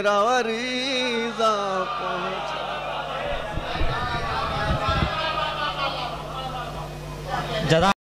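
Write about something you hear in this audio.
A middle-aged man recites in a chanting voice through a microphone in an echoing hall.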